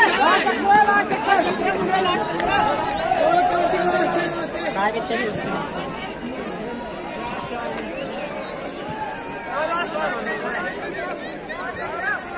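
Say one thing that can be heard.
A crowd of young men talks and shouts outdoors.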